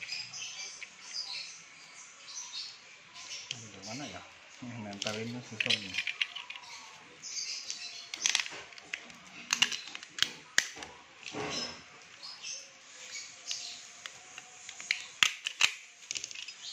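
Pliers click and scrape against a small metal part.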